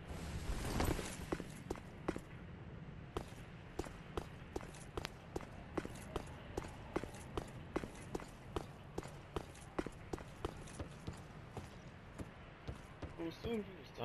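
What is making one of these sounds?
Armoured footsteps clank steadily on wooden planks and stone.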